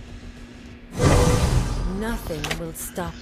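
A video game's magic effect whooshes as a character respawns.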